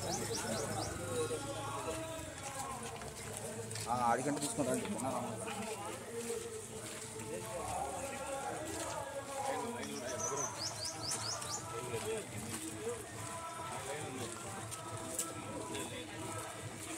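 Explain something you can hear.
A crowd of men talk and call out at once outdoors.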